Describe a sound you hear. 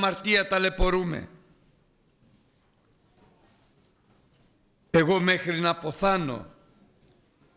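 A middle-aged man speaks calmly and deliberately through a microphone, with pauses.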